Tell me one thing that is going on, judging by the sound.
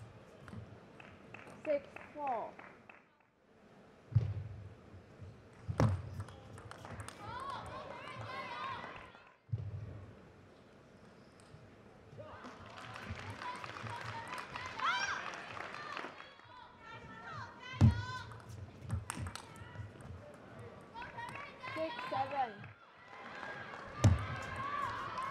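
A ball clicks back and forth as players hit it with paddles in a quick rally.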